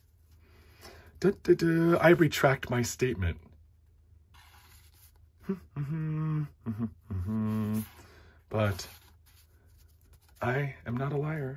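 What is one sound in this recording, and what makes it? Stiff cards slide and rustle against each other.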